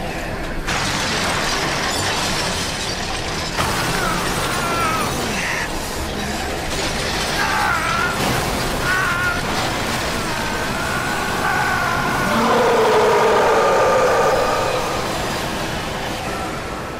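Flames roar loudly and steadily.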